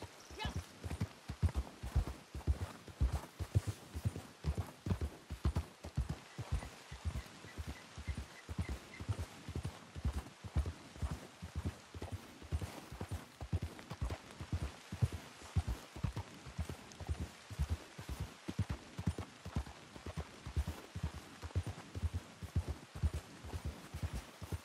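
A horse's hooves thud steadily in snow.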